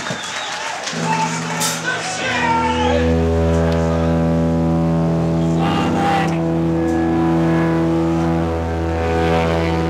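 Electric guitars play loud, sustained distorted chords.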